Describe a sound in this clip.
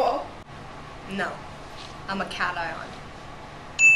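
A second teenage girl answers her nearby.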